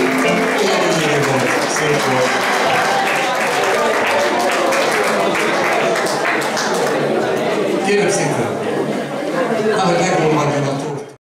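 An elderly man sings through a microphone and loudspeakers.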